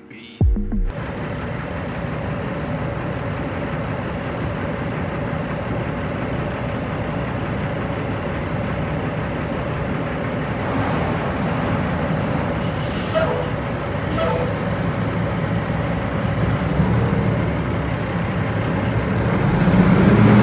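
A large diesel truck engine idles with a steady low rumble close by.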